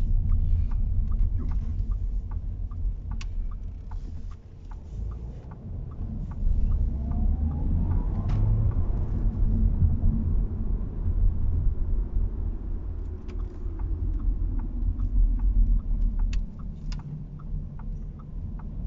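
A car engine hums low and steady while driving.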